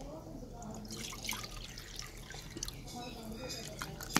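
Liquid splashes as a bowl is emptied into a pot.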